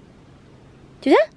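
A cat meows once.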